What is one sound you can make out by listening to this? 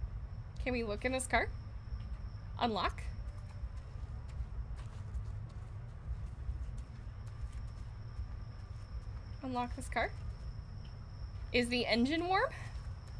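A young woman speaks into a microphone in short, lively bursts.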